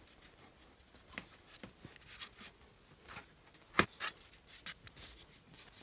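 A brush scrubs lightly over plastic.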